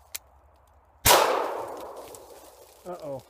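A gunshot fires close by and echoes through the woods.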